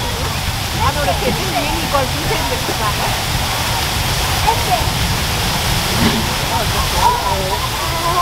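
Men chat nearby.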